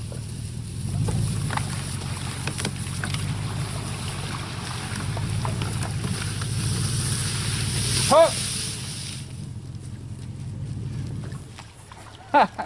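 A small boat engine hums steadily nearby.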